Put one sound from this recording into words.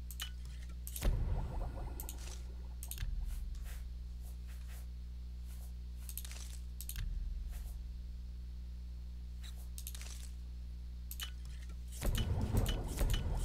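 A liquid bubbles and swirls briefly as a potion is made.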